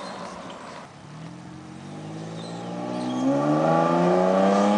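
A pickup truck's engine revs up again, rising in pitch.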